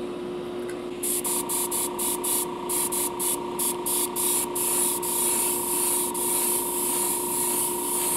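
An airbrush sprays with a hiss in short bursts.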